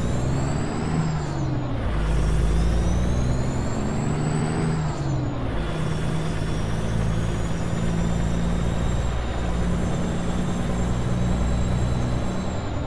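A truck's diesel engine rumbles and revs, rising in pitch and dropping as it shifts gears.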